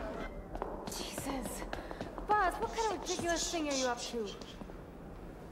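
A young man talks urgently in a hushed voice.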